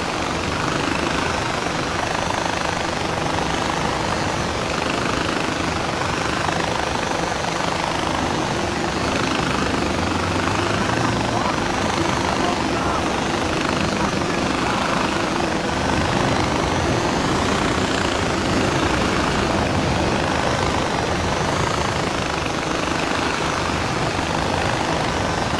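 A zipline trolley whirs steadily along a cable.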